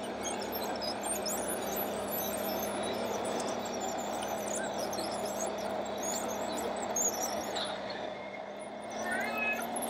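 Dirt scrapes and crumbles in front of a model bulldozer's blade.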